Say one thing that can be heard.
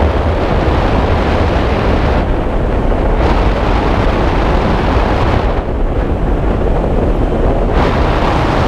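Strong wind roars and buffets loudly throughout.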